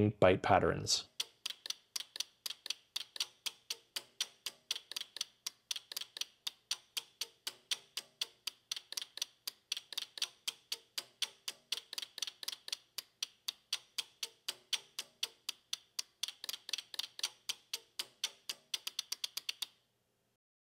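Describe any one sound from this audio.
Relays click rapidly and steadily.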